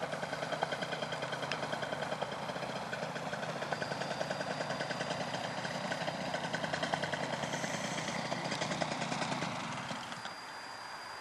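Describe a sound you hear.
A small propeller engine buzzes steadily overhead.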